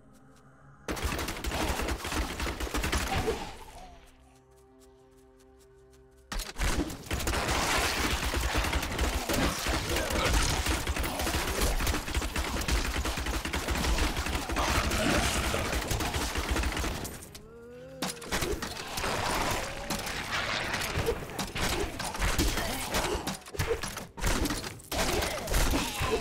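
Fiery spell blasts crackle and whoosh in a game.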